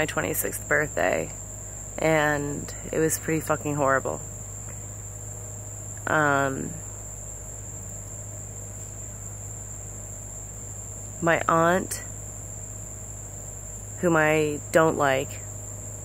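A young woman speaks quietly and close up, in short bursts with pauses.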